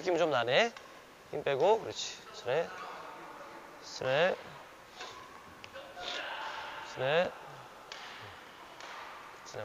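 A badminton racket strikes a shuttlecock with sharp pops.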